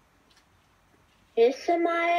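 A toy blaster fires with soft pops.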